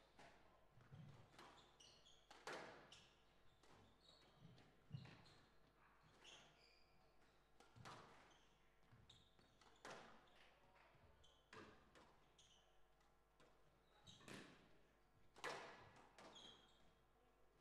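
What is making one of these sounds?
A squash ball smacks sharply against the walls in a quick rally, echoing in a large hall.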